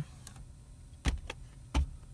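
A disc slides out with a soft click.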